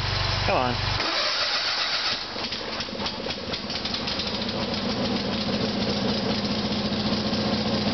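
A lawn tractor engine runs with a steady, loud rumble that slowly rises.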